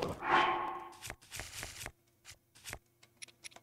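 Short electronic menu clicks tick.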